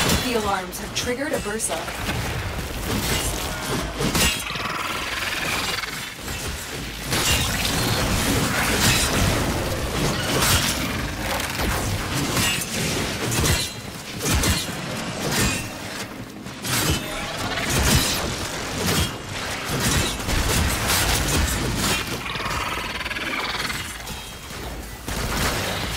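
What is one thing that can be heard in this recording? Game weapons slash and clash with sharp impacts.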